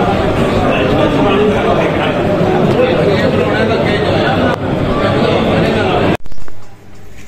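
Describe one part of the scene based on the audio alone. A crowd of men chatters at once in an echoing hall.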